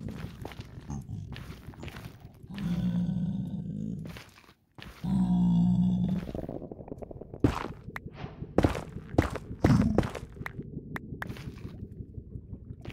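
Footsteps crunch steadily over stone.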